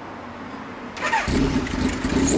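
A motorcycle engine starts up close by.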